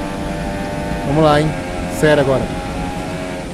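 A racing car engine revs sharply up and down during quick gear changes.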